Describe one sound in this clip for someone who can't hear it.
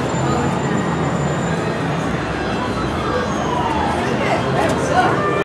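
A crowd of people chatters and shouts in a loud, echoing hall.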